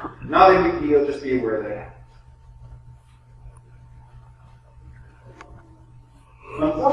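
A man speaks with animation in a room with a slight echo.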